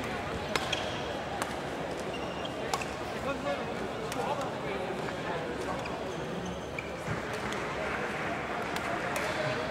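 Shuttlecocks are struck with sharp racket pops, echoing in a large hall.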